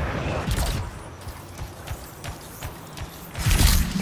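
Heavy metal footsteps thud on the ground.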